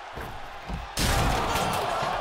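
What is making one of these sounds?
A heavy body slams down hard with a loud thud.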